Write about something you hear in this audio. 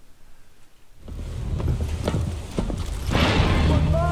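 Boots clank on a metal grating.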